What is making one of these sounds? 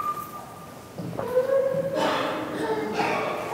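A man chants through a microphone in an echoing hall.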